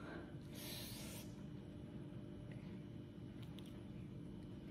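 A young girl slurps noodles close by.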